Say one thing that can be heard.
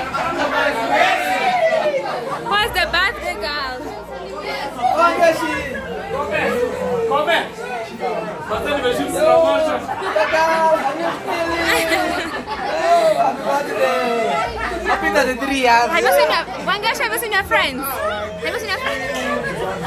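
Several young women and men talk, shout and cheer excitedly close by in a small room.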